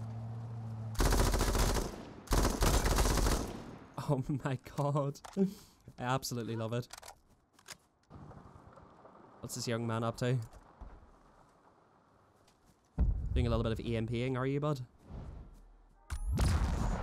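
A machine gun fires loud rapid bursts.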